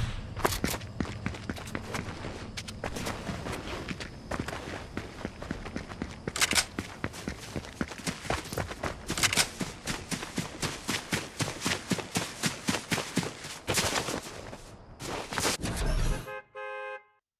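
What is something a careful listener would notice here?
Quick footsteps patter across grass.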